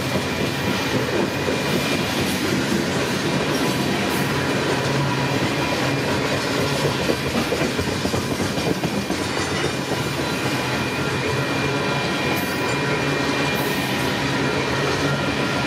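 Steel wheels clack and squeal on the rails.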